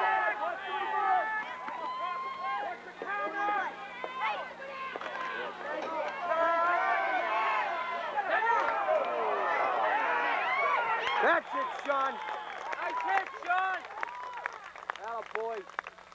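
A crowd of spectators shouts and cheers excitedly outdoors.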